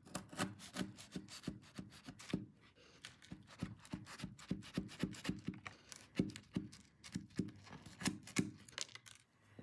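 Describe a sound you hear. A knife scrapes and taps against a crunchy cookie.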